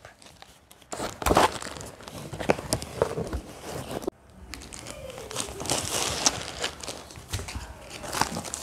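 Cardboard and packaging rustle and scrape as a box is opened.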